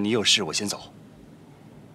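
A man speaks cheerfully nearby.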